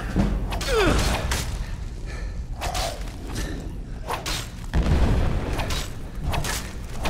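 A loud burst of magic roars and crackles.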